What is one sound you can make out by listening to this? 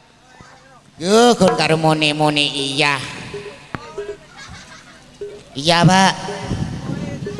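A man sings loudly into a microphone, heard through loudspeakers outdoors.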